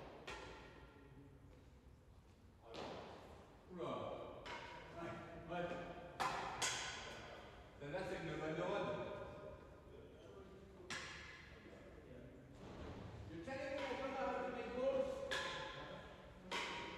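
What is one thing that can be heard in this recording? Racquets strike a ball with sharp smacks that echo through a large hall.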